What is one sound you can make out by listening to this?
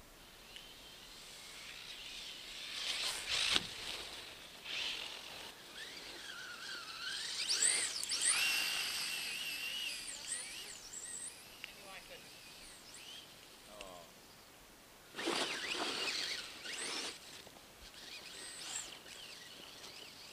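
An electric motor of a toy car whines, rising and falling in pitch as it speeds over snow.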